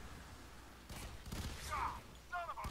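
A gunshot cracks nearby.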